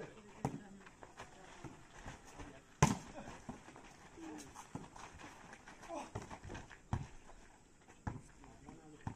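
A volleyball is hit with sharp slaps outdoors.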